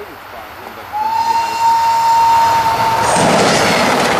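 A train horn sounds a long steady blast.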